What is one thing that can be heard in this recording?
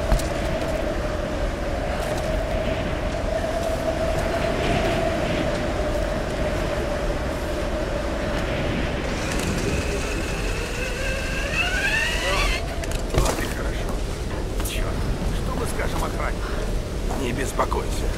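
Footsteps crunch over stone and wooden planks.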